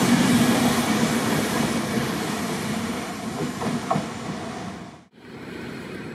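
A passenger train rumbles and clatters past close by, slowly fading.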